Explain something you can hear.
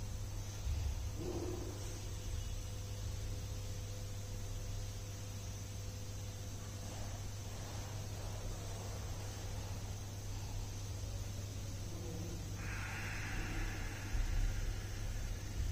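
A man breathes slowly and deeply close to a microphone.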